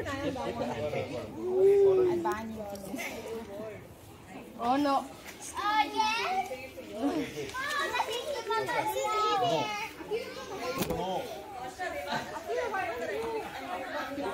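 Young children chatter and call out nearby outdoors.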